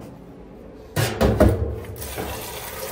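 A tap is turned on with a clunk.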